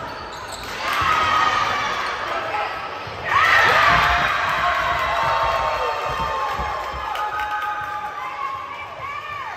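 Spectators cheer and shout loudly in an echoing gym.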